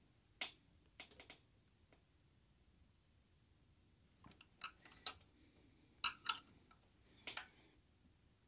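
A metal wrench clicks and scrapes against a switch nut.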